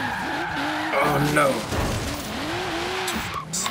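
A car crashes into bushes with a loud scraping thud.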